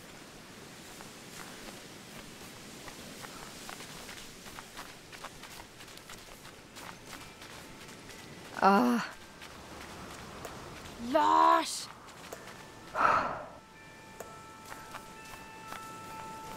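Footsteps crunch softly in snow.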